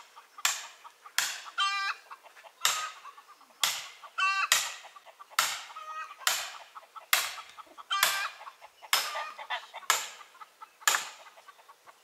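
A hammer strikes metal in steady, repeated blows that ring briefly.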